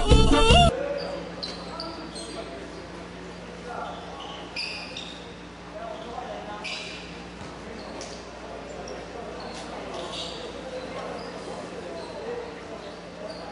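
Young men chatter in a large echoing hall.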